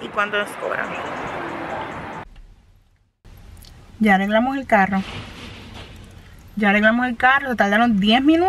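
A woman speaks close to the microphone with animation.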